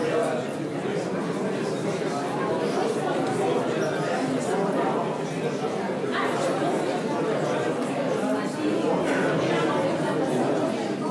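A crowd of men and women murmur and talk in a large echoing hall.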